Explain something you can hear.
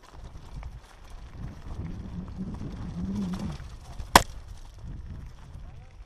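The frame of a mountain bike rattles over bumps.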